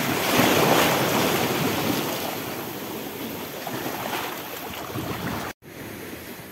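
Small waves lap and splash against rocks close by.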